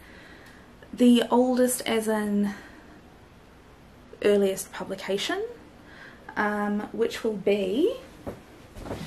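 A young woman talks expressively and close up, in short bursts with pauses.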